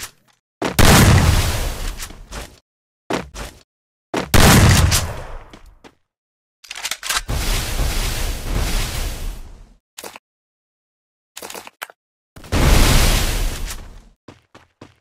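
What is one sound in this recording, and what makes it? Ice walls burst up with a loud crackling crash.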